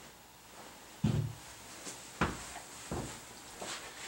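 A man's footsteps thud on a hard floor.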